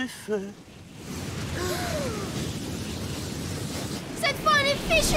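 A strong wind roars and rushes.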